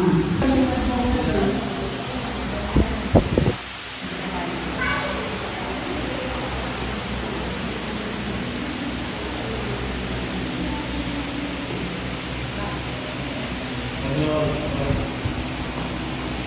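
Women talk quietly nearby.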